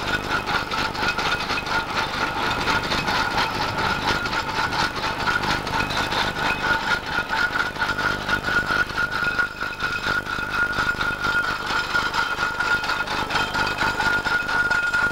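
A steam traction engine chugs with a rapid, steady puffing as it rolls closer.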